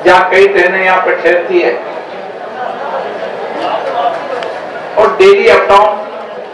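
A middle-aged man speaks loudly through a microphone and loudspeakers, with animation.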